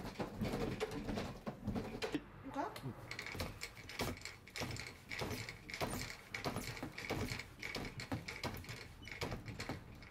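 A wooden cabinet with glass doors rattles and knocks repeatedly as it is shaken.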